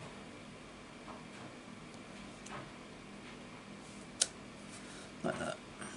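A stamp presses down onto card with a soft thud.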